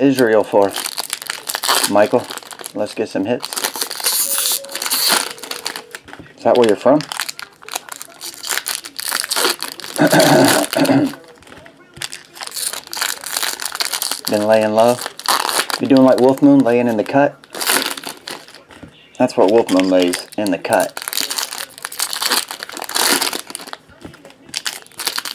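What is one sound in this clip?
Foil trading card wrappers crinkle in hands.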